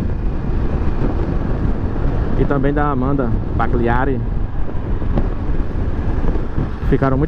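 Wind rushes past a moving motorcycle rider.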